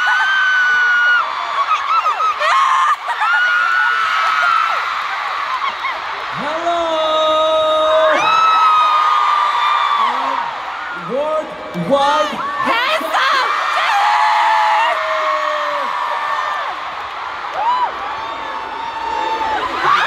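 A large crowd cheers and screams.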